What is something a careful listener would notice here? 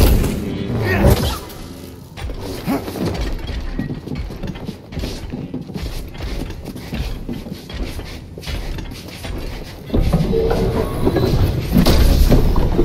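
A lightsaber clashes against a metal staff with crackling impacts.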